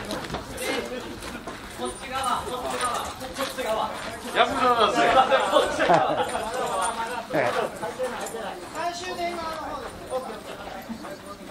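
A group of men shout together in loud chorus.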